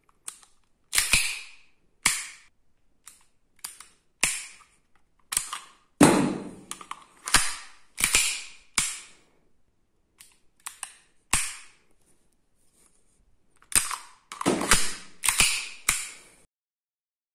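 A pistol fires sharp shots that ring briefly in a small room.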